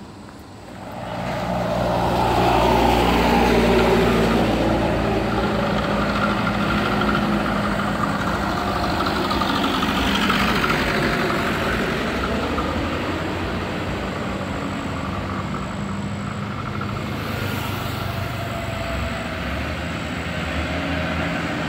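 A heavy truck engine roars and labours close by.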